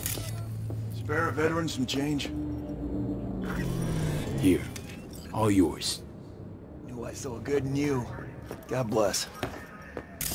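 An elderly man speaks in a weary, pleading voice.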